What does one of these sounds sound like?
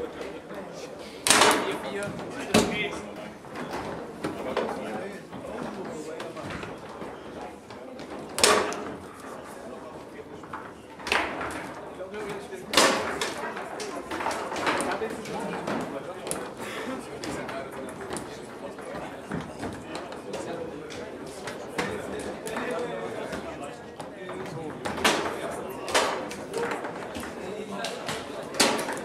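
Foosball rods rattle and spin in their bearings.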